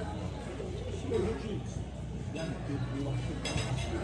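A young man chews food.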